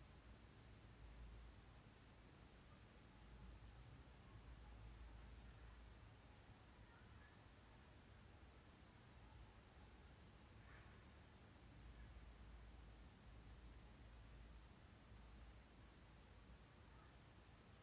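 A crochet hook softly rustles through yarn.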